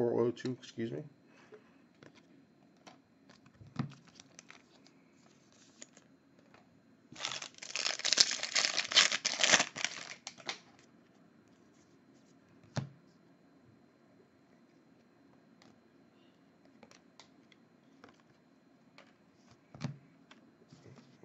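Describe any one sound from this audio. Trading cards flick and shuffle in a stack.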